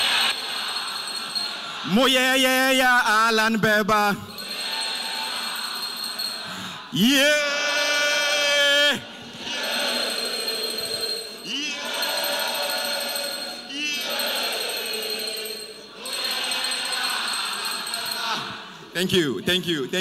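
A large crowd cheers and shouts in response.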